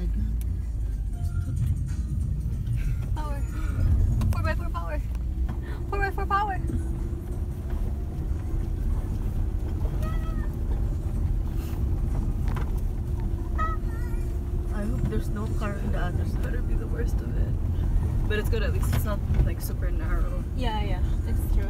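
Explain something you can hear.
A car engine rumbles steadily while driving on a rough road.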